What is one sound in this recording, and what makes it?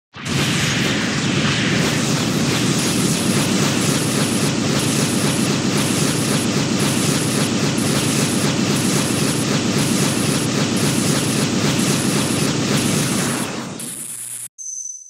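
Rapid punches and energy blasts crash and roar without a break.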